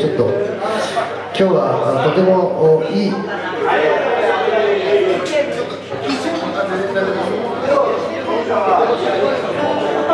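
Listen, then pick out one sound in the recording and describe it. A man sings into a microphone with a band.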